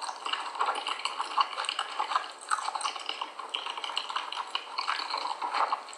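A person chews a mouthful of cornstarch with crisp, squeaky crunches close to the microphone.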